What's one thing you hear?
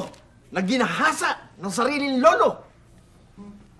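A woman speaks sharply nearby.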